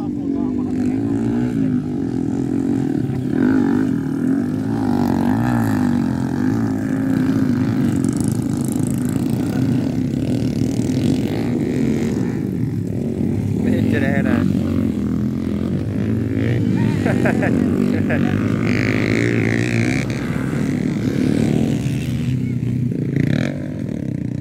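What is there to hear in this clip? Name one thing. Dirt bike engines rev and whine nearby, rising and falling as the bikes race past.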